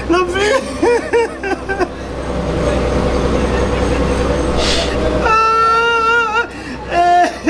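A young man wails and sobs loudly, close by.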